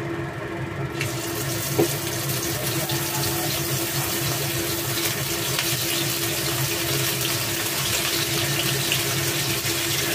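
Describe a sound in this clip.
Food sizzles loudly as it fries in hot oil.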